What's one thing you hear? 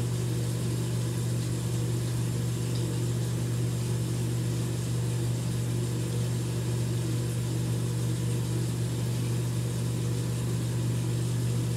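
Wet hands rub together with soap.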